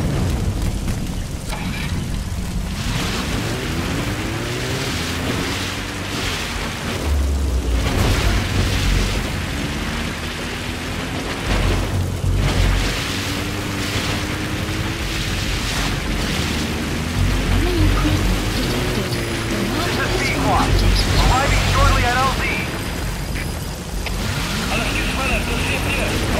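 A jeep engine rumbles steadily as the vehicle drives over rough ground.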